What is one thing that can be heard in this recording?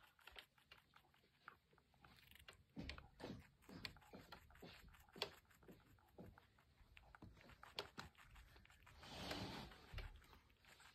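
A small rabbit crunches and nibbles food from a dish.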